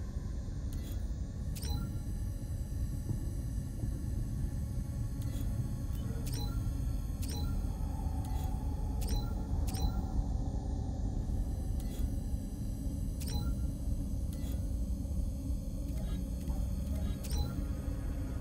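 Short electronic menu blips sound as selections change.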